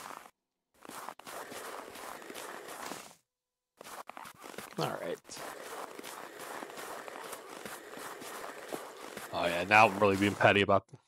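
A snow scraper scrapes and pushes through snow.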